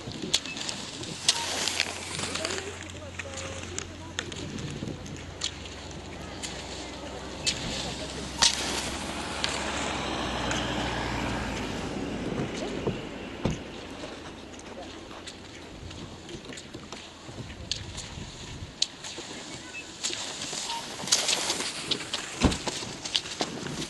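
Skis swish and hiss over packed snow as a skier glides close past.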